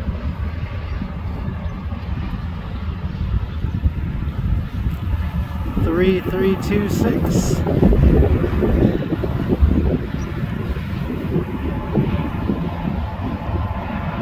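Diesel locomotives rumble loudly as they roll past.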